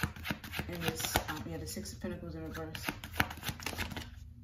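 Playing cards flick and shuffle in a hand.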